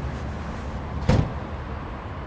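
A metal tool clicks in a door lock.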